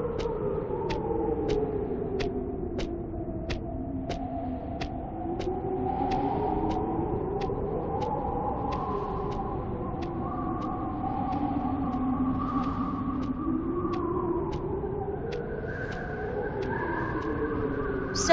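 Footsteps tap at a steady walking pace on a hard floor.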